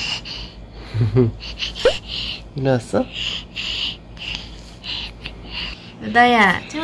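A baby coos and babbles.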